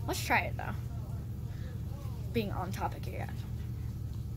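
A young girl speaks calmly close by.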